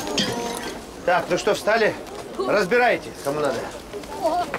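A middle-aged man shouts loudly outdoors.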